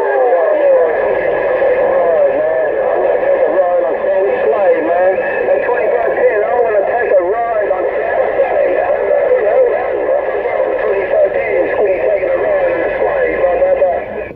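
A radio gives off warbling, wavering whistles.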